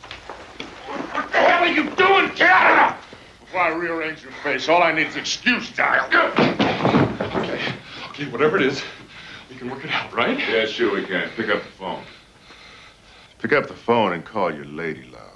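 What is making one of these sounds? A man speaks angrily and forcefully.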